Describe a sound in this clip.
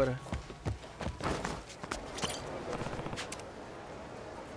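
Footsteps run quickly on a hard pavement.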